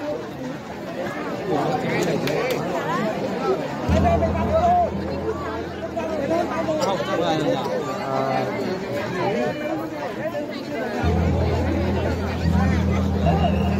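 A large crowd chatters and calls out loudly outdoors.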